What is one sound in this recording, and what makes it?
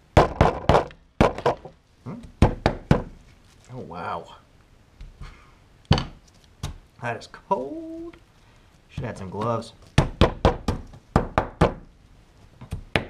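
A hammer strikes ice with sharp, cracking knocks in quick bursts.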